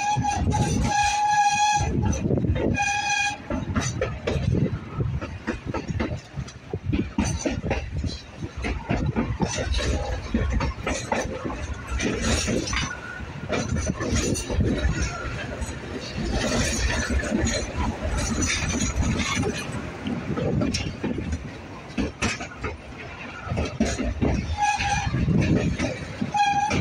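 A pulley rolls and rumbles along a steel cable.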